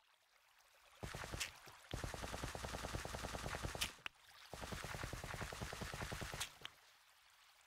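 Water splashes and bubbles.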